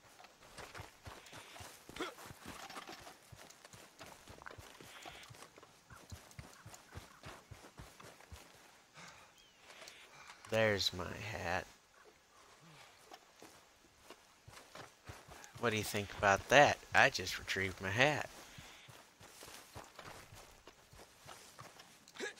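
Footsteps crunch steadily over grass and dirt.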